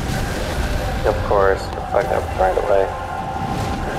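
A huge beast lets out shrill, wavering cries.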